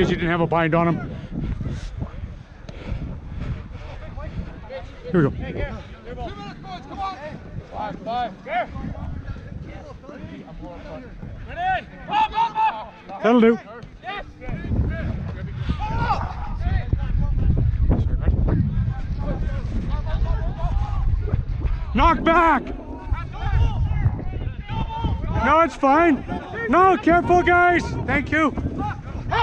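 Men shout and call to each other outdoors on an open field.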